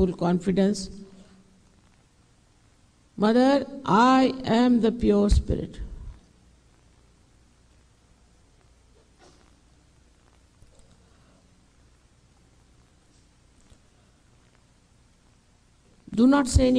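An elderly woman speaks calmly into a microphone, with long pauses.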